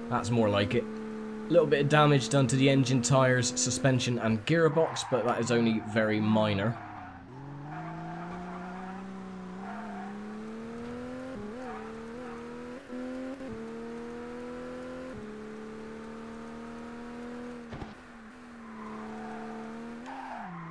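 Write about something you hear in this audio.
A racing car engine drones, rising in pitch and dropping as the gears change.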